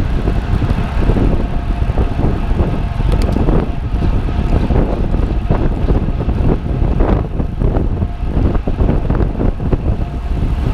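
Wind buffets loudly as a bicycle rides fast on a road.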